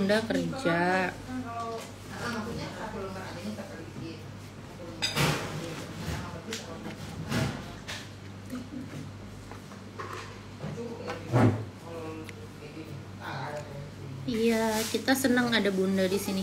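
A young woman talks casually and close by.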